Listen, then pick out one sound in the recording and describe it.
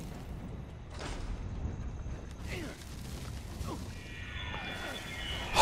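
A fiery blast roars and rumbles.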